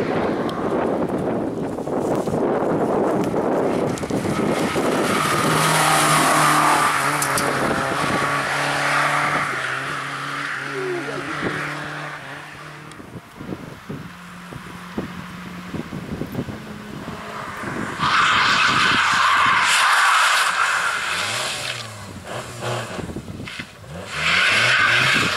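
A rally car engine roars loudly, revs hard and then fades into the distance.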